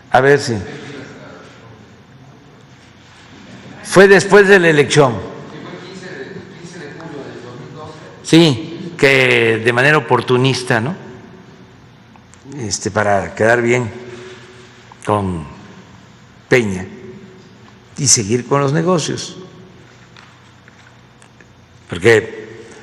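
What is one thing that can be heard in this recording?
An elderly man speaks slowly and calmly into a microphone, with pauses, in a large echoing hall.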